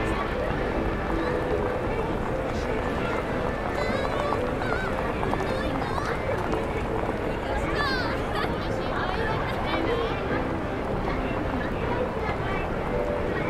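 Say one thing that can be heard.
A crowd of men and women chatter and murmur all around.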